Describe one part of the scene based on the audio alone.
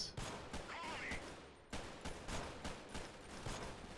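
A rifle fires single shots close by.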